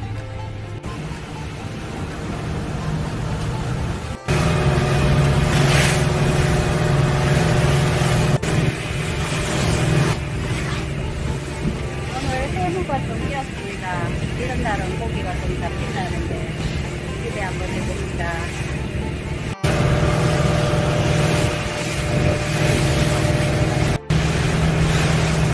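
A boat's outboard motor drones steadily.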